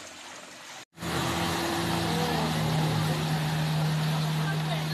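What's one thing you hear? Jet ski engines roar across the water.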